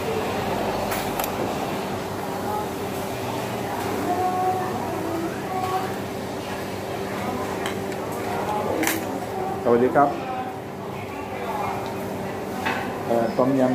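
A fork and spoon scrape and clink on a plate.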